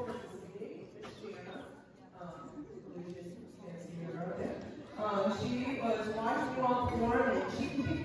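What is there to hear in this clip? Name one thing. A woman speaks through a microphone over loudspeakers.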